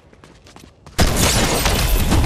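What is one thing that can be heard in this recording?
A gun fires.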